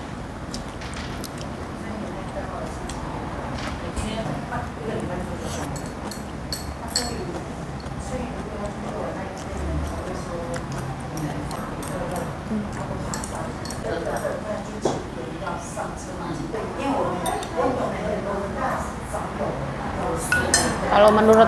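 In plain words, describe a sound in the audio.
A young woman talks calmly close to a microphone.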